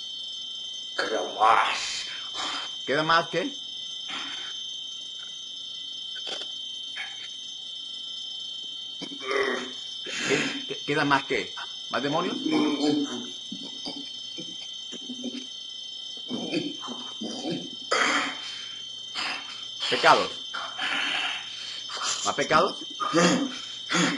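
A young man cries out and wails loudly over an online call.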